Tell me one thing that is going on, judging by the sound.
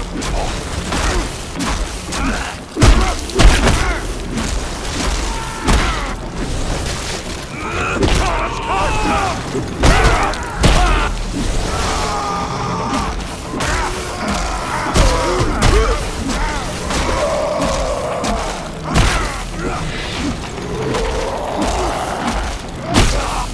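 Heavy blows land with loud thuds, again and again.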